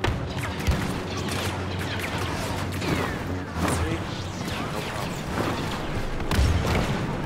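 A lightsaber hums and swooshes.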